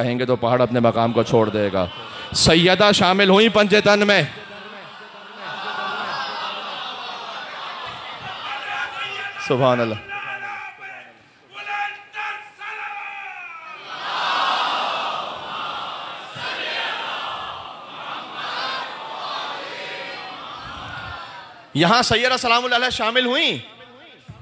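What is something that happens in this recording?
A man chants loudly in a drawn-out, melodic voice through a microphone.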